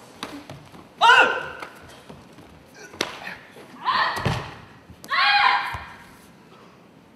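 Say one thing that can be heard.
A young woman shouts sharp, loud cries.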